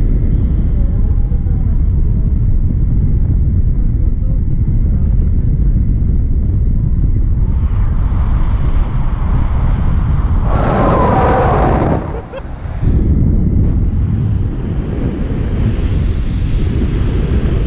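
Wind rushes and buffets a microphone during a paraglider flight.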